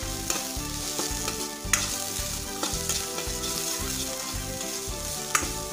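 A metal spatula scrapes and clinks against a metal wok.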